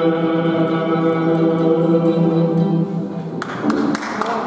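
A choir holds a final chord in a large echoing hall.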